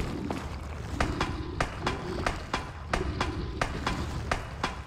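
Hands and boots clank on metal ladder rungs in a steady rhythm.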